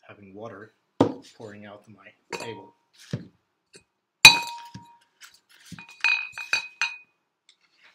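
Clay flower pots clink and knock against each other.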